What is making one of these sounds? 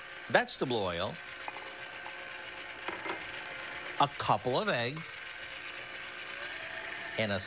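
Liquid pours into a glass bowl.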